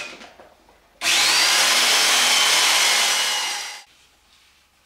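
A power drill whirs loudly, grinding into wood.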